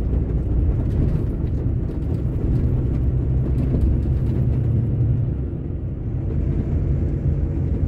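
A vehicle engine hums steadily as tyres roll along a road.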